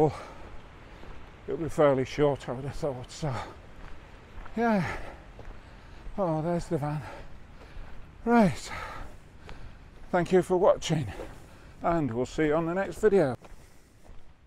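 An elderly man speaks calmly and close to the microphone.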